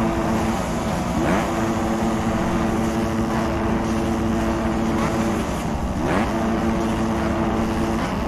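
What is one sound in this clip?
A motorcycle engine idles and revs up sharply now and then.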